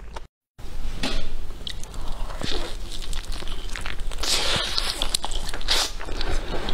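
A young woman chews and crunches crispy food close to a microphone.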